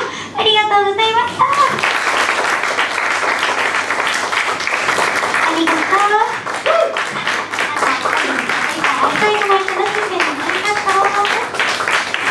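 A young woman sings through a microphone over loudspeakers in an echoing hall.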